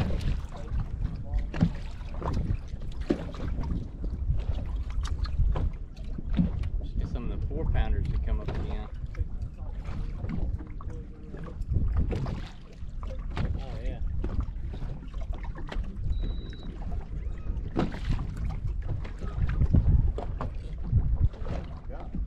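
Wind gusts across the open water into a microphone.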